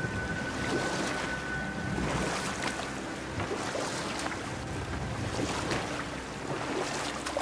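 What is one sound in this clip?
Oars splash and paddle through water.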